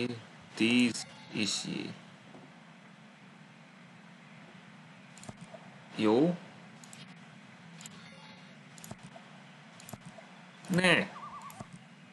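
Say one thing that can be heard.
A young woman speaks briefly and casually into a microphone.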